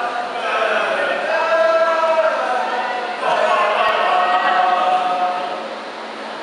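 Young people's voices ring out loudly in a large echoing hall.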